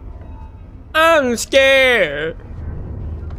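A man exclaims loudly and suddenly into a nearby microphone.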